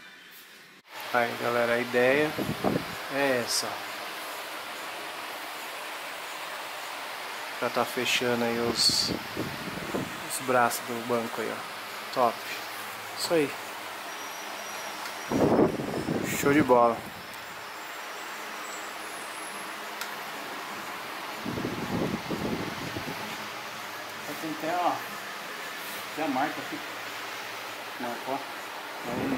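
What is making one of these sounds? A man talks calmly and explains, close by.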